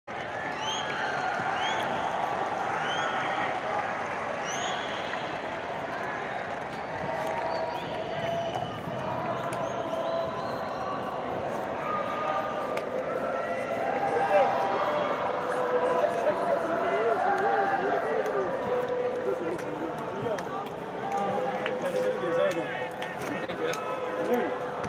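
A crowd of young men shouts and cheers outdoors in a large stadium.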